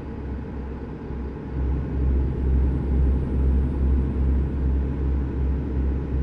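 Tyres hum on a road.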